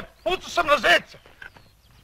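A man shouts outdoors.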